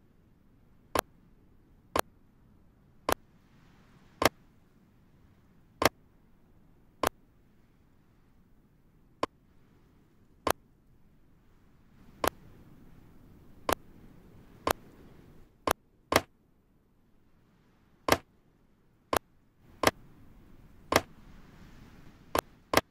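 Sharp interface clicks sound one by one at an irregular pace.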